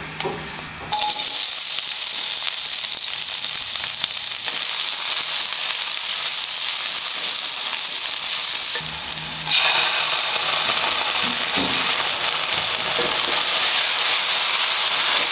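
Onions sizzle loudly in hot oil.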